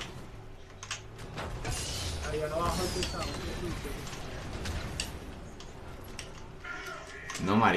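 A game vehicle engine revs and roars.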